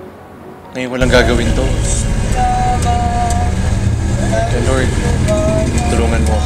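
A vehicle engine rumbles steadily from inside a moving jeepney.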